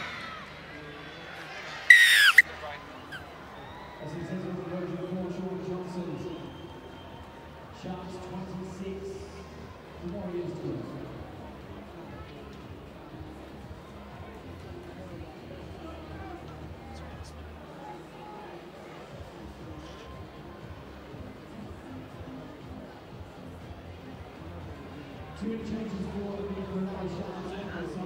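A large crowd murmurs and cheers outdoors.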